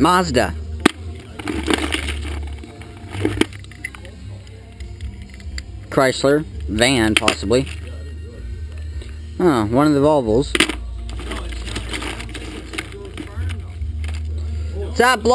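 Metal keys clink and rattle in a bucket.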